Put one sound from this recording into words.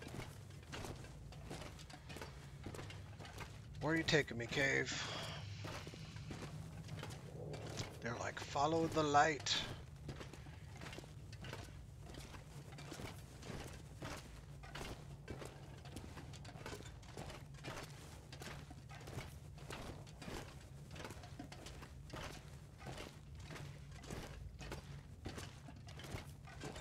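Footsteps crunch steadily on stone.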